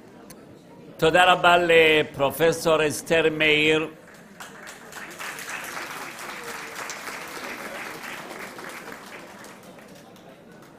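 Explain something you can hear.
A middle-aged man speaks into a microphone, heard through a loudspeaker in a large hall.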